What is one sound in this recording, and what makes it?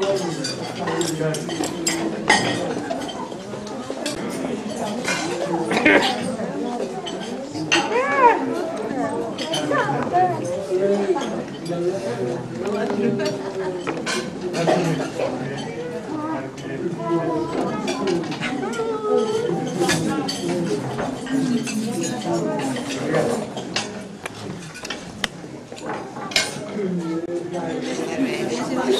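Dishes and cutlery clink.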